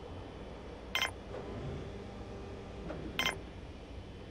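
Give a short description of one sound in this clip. A short electronic interface click sounds twice.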